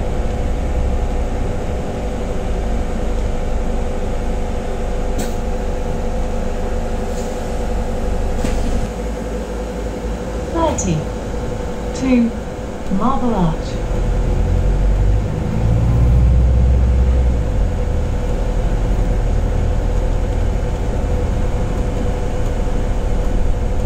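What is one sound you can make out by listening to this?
A bus engine rumbles and hums steadily.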